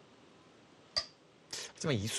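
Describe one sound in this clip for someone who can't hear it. A stone clicks down onto a wooden game board.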